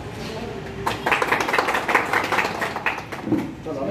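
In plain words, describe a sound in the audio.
A crowd claps its hands.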